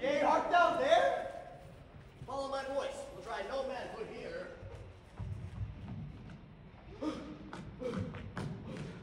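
A young man sings in a large echoing hall.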